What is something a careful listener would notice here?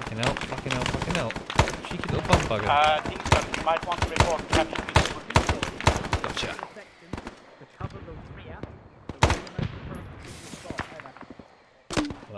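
Gunshots crack in rapid bursts outdoors.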